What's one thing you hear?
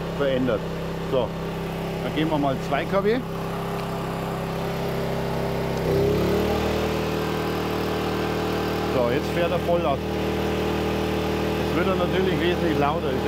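A small generator engine hums steadily and shifts pitch as it changes speed.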